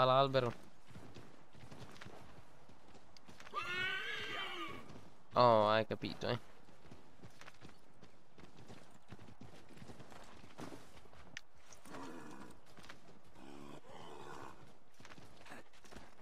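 A horse's hooves thud through snow at a gallop.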